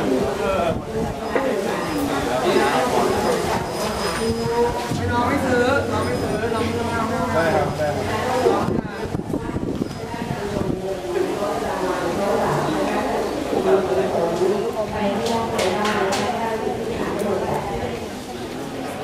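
Several young men talk and joke with animation outdoors.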